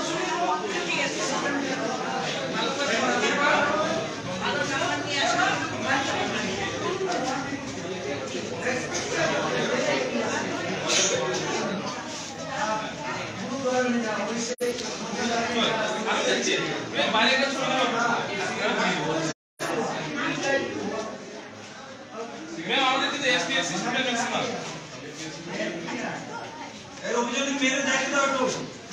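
A crowd of girls and women talk and shout over each other close by.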